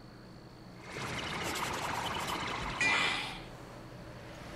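A shimmering magical whoosh swells and then fades.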